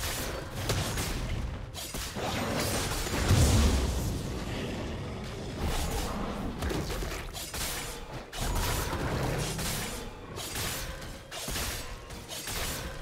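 Magic spell effects whoosh and crackle.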